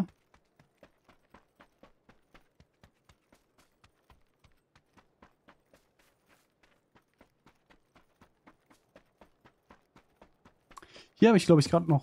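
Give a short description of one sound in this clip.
Footsteps run quickly and steadily on hard ground.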